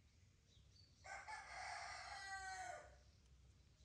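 A baby monkey squeals loudly.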